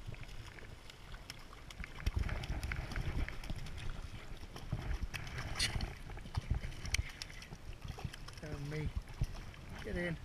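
A fish splashes and thrashes in the water close by.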